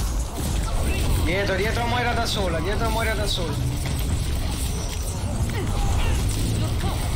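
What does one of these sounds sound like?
Explosions and gunfire rumble loudly throughout.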